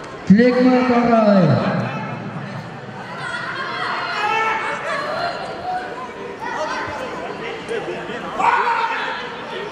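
A crowd of spectators shouts and cheers in an echoing hall.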